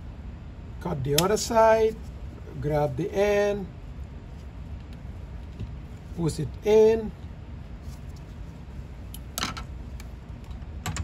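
Plastic and glass parts clink and click as they are handled.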